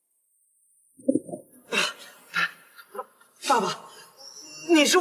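A young man speaks quietly and hesitantly, close by.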